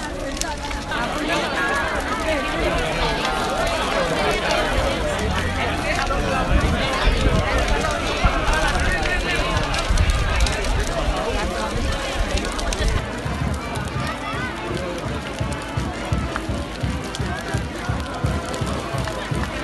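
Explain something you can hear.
A bonfire roars and crackles.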